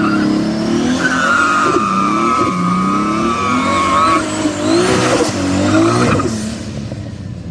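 Tyres squeal and screech on tarmac.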